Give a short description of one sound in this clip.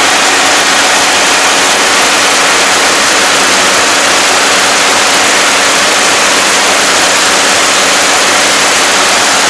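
A combine harvester's engine roars steadily up close.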